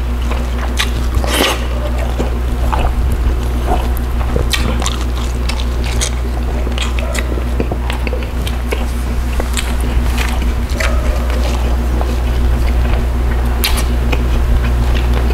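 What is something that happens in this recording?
A man chews food wetly and loudly, close to a microphone.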